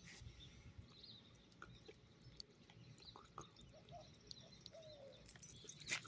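A hand rubs a small dog's long fur.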